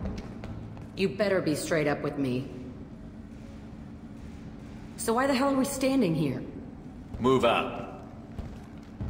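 A young woman speaks in short, tense bursts.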